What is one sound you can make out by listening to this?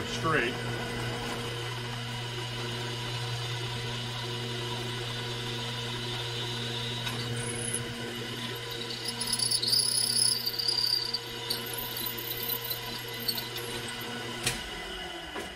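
A drill press motor hums steadily.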